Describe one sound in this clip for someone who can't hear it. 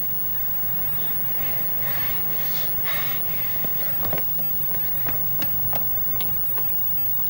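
A woman cries out in distress nearby.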